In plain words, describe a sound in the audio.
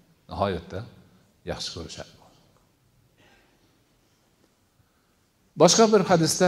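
An older man speaks calmly into a microphone, with pauses between phrases.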